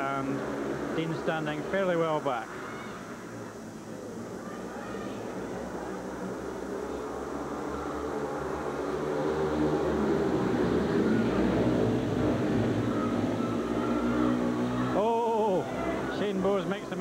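Motorcycle engines roar and whine as they race around a track.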